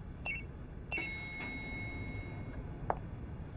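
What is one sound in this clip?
An elevator bell chimes once.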